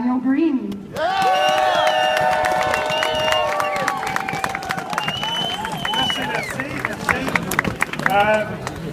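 A crowd of people sings together loudly outdoors.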